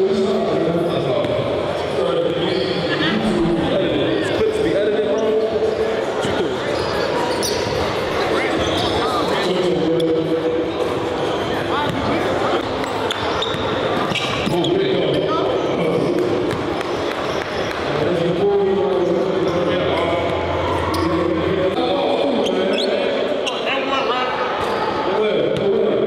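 A young man speaks energetically into a microphone over loudspeakers in a large echoing gym.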